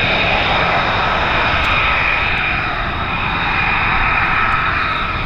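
A jet engine roars with a loud, steady whine close by.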